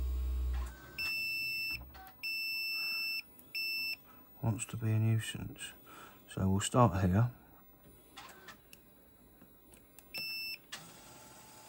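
A meter beeps in short, steady tones.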